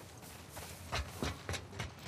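Footsteps clang up metal stairs.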